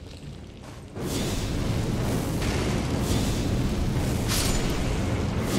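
A magical blast crackles and hisses loudly.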